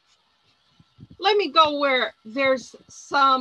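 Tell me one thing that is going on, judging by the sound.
An older woman speaks calmly and close to a microphone.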